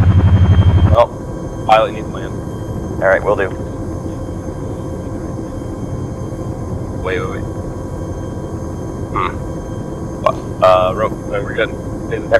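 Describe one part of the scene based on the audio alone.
A helicopter engine drones steadily, muffled as if heard from inside the cabin.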